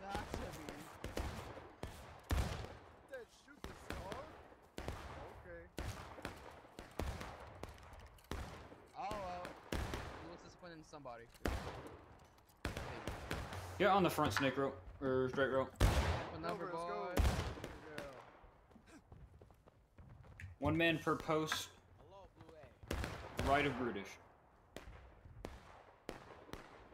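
Gunshots crack repeatedly nearby and in the distance.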